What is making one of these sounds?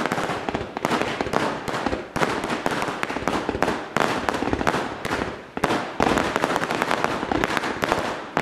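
Fireworks crackle and pop rapidly overhead.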